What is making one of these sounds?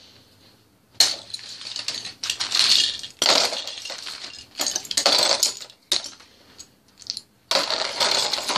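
Plastic toy bricks clatter and rattle as a hand rummages through them.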